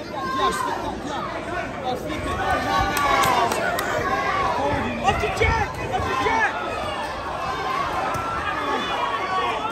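Gloved punches thud against a boxer's body.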